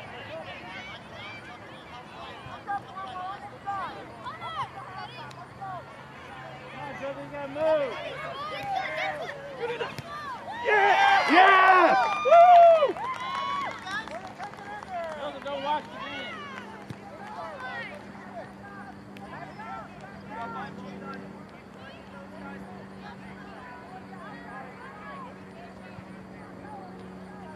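Young players and spectators call out and shout across an open field.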